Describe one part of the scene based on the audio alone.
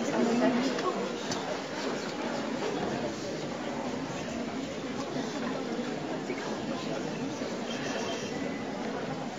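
Footsteps shuffle across a wooden stage.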